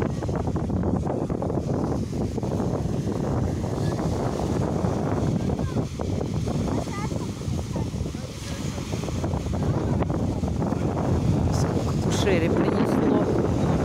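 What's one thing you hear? Small waves wash onto the shore.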